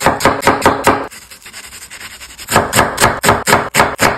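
A knife chops through onion.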